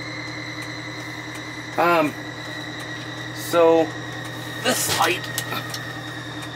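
A large diesel engine idles with a steady low hum.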